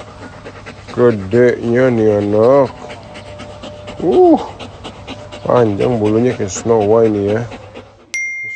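A dog whines and yowls in long, bending, talkative moans.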